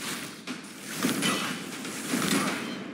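A heavy blow strikes with a thud.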